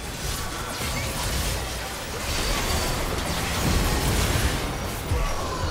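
Game spells whoosh and blasts crash in a busy battle.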